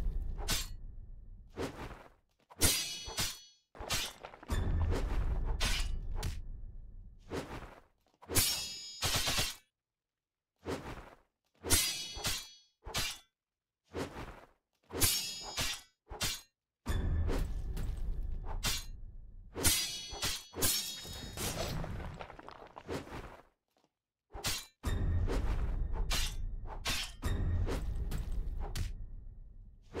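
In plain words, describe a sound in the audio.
Sword strikes swoosh and clang in quick bursts.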